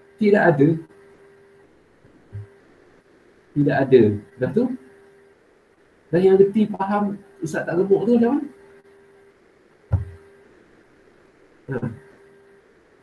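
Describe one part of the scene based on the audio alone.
A man speaks in short phrases over an online call.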